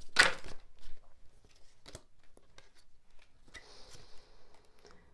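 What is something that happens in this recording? Cards slide and tap softly against each other and a wooden table.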